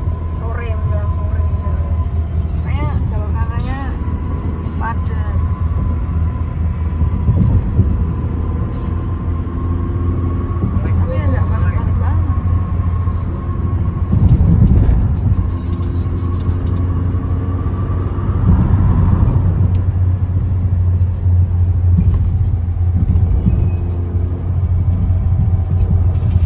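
A car engine and tyres hum steadily as it drives.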